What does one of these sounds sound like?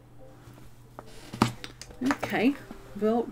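A middle-aged woman talks with animation close to a microphone.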